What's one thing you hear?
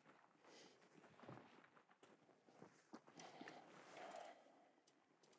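A man shuffles and crawls over gravel.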